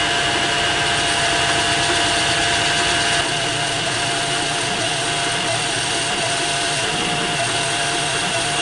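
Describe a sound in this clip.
A metal lathe hums steadily as it spins.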